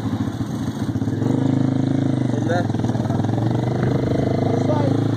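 A motorcycle engine revs up and roars as it speeds away.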